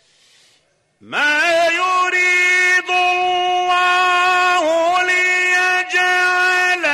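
An elderly man chants in a long, drawn-out, melodic voice.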